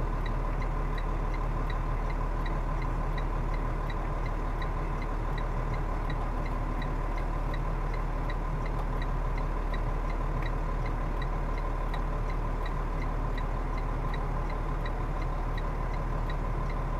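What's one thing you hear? A diesel semi truck engine rumbles as the truck reverses.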